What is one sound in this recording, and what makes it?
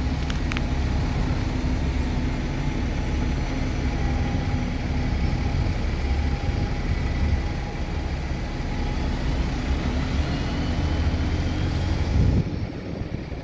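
A bus engine rumbles as the bus pulls away and drives off.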